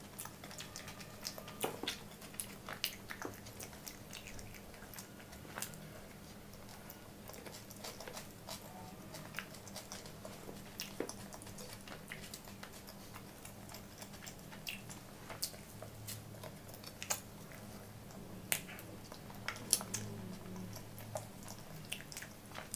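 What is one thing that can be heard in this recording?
Bread crackles and crunches as fingers tear it.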